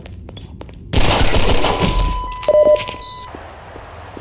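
A pistol fires several loud shots in a hard, echoing stairwell.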